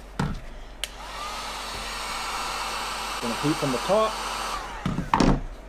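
A heat gun blows with a steady whirring hiss.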